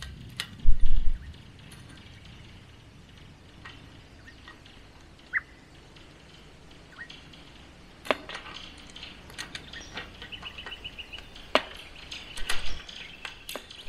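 Fence wire rattles and clicks as a man twists it by hand.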